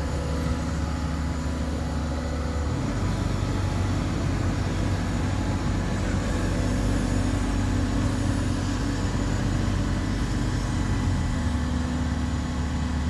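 An excavator's diesel engine rumbles steadily up close.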